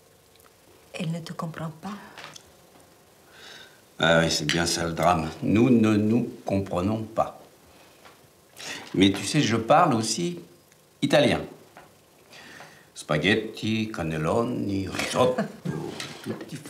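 A middle-aged man speaks firmly and close by.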